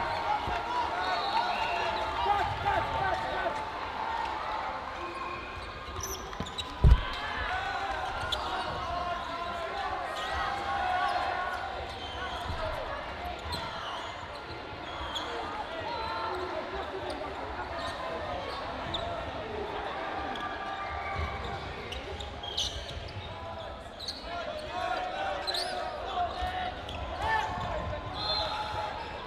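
Trainers squeak on the hall floor.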